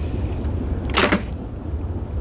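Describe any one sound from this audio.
A phone receiver clicks down onto its hook.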